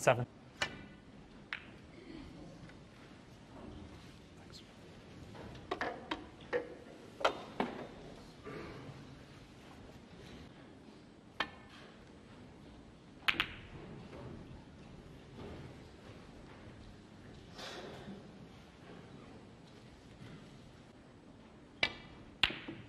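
A cue strikes a snooker ball with a sharp click.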